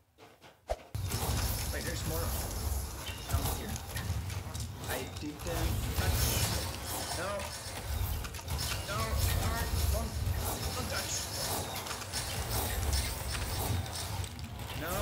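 Game combat sounds clash and blast rapidly.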